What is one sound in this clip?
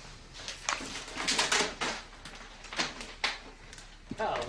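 Paper rustles and crinkles as a large sheet is unrolled.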